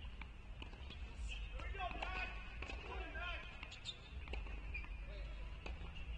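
A tennis player bounces a ball before serving.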